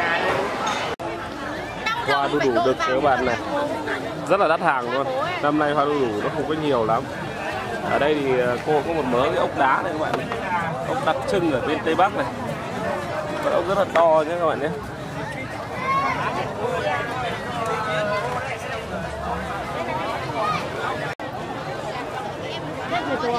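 A busy outdoor market crowd murmurs in the background.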